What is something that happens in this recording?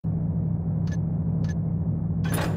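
A game menu clicks twice, short and soft.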